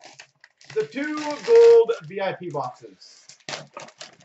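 A foil wrapper crinkles and rustles in hands.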